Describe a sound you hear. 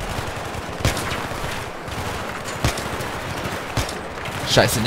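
Rifle shots crack sharply with echoing reports.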